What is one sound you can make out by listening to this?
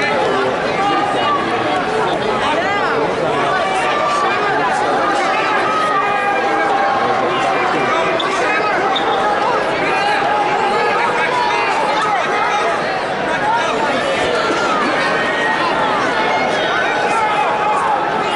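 A crowd of spectators shouts and cheers loudly in a large echoing hall.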